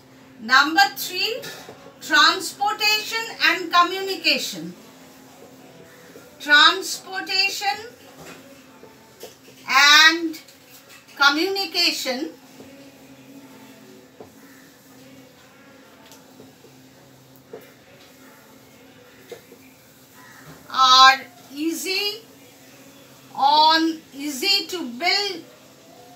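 A woman speaks calmly and clearly, close by, in bursts with pauses.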